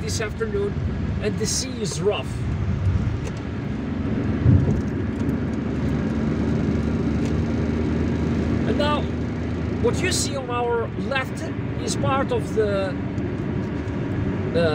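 Tyres roll on the road with a steady low rumble, heard from inside a moving car.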